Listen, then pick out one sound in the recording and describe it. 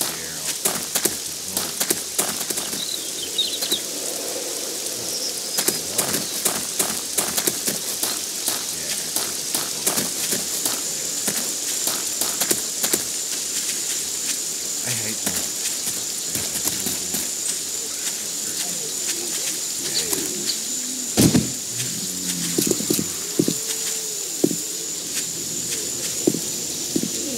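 Footsteps crunch through grass and gravel.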